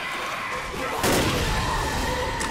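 A creature bursts with a loud, wet blast.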